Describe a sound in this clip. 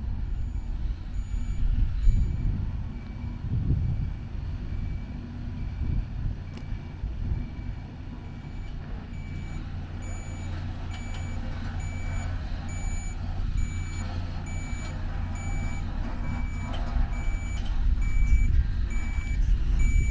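A heavy truck engine rumbles low and grows louder as a road train slowly approaches.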